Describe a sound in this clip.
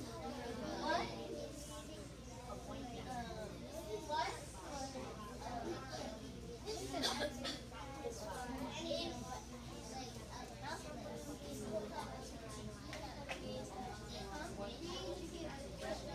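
A woman speaks to a group of children with animation, nearby in a room.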